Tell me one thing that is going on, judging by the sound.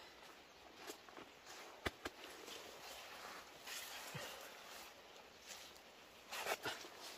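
Leaves and plants rustle as a man moves through them.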